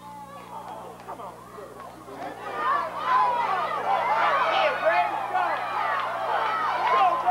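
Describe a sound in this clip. A crowd cheers loudly outdoors, swelling as a play unfolds.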